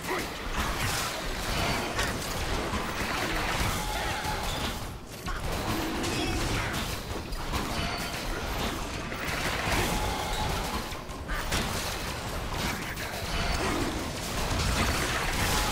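Game battle effects clash, crackle and whoosh as a dragon is attacked with spells.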